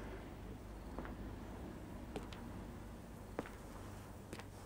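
Footsteps approach on a hard floor.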